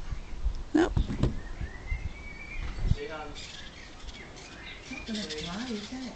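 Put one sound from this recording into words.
A small bird chirps softly close by.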